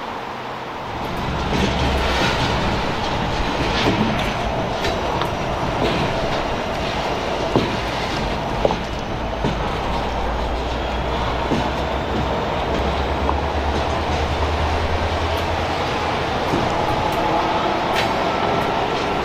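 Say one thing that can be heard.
A diesel locomotive engine rumbles close by.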